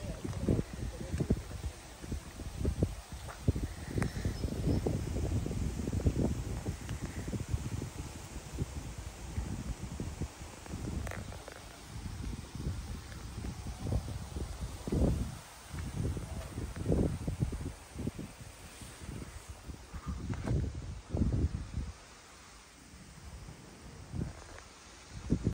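Wind gusts rumble against the microphone outdoors.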